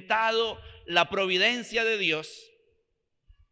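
A middle-aged man speaks with animation into a microphone, in a reverberant hall.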